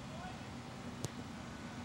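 A soccer ball is kicked with a sharp thud.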